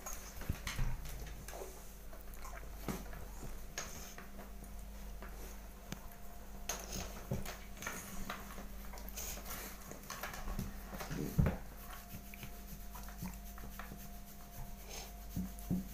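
A hand rubs and pats a dog's fur with a soft rustle.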